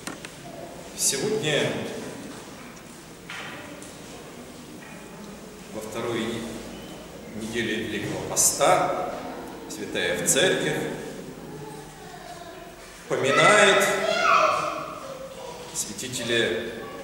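An elderly man speaks calmly and slowly in a room with some echo.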